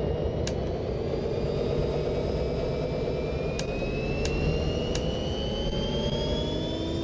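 A diesel locomotive engine drones steadily with a slowly rising whine.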